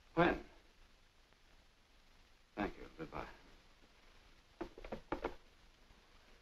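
A man speaks into a telephone in short bursts.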